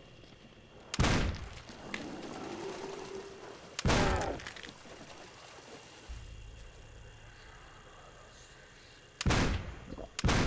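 A shotgun fires loudly with a booming echo.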